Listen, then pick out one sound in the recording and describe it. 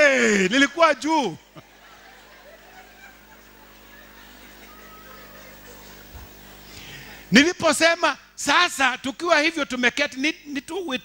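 A man preaches forcefully through a microphone in a large echoing hall.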